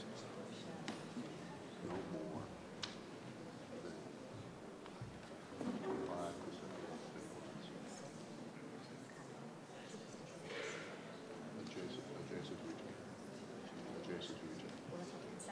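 A man speaks quietly near a microphone in a large echoing hall.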